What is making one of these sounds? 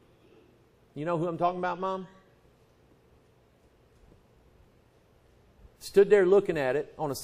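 A man speaks slowly and deliberately into a microphone, with long pauses.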